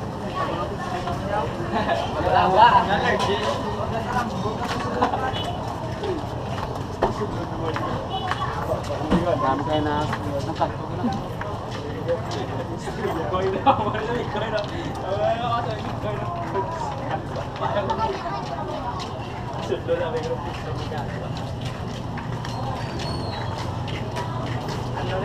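Footsteps scuff along a concrete walkway.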